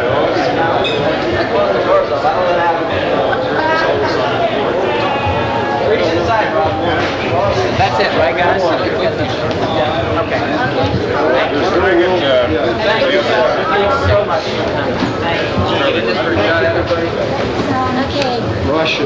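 A crowd of men and women chatter all around in a busy, echoing room.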